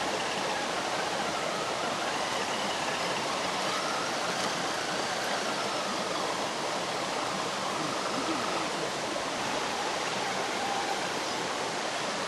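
Plastic tyres splash through shallow water.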